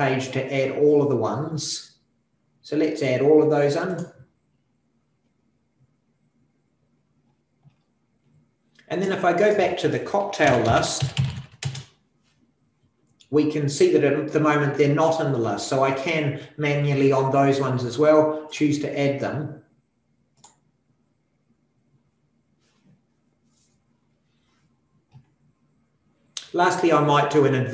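A man talks calmly and explains, close to a microphone, with pauses.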